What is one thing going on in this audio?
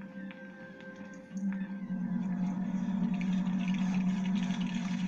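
Video game music and sound effects play through a television speaker.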